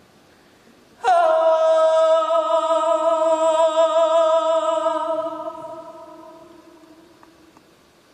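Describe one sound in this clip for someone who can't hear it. A young woman sings one long, steady note that slowly fades away.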